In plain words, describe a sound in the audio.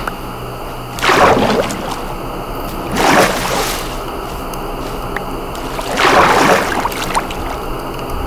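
Water splashes in short rushing bursts.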